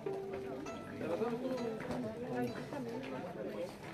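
An acoustic guitar strums nearby.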